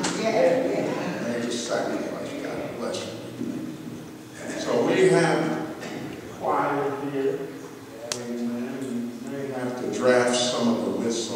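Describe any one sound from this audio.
An elderly man preaches with fervour through a microphone in a large echoing hall.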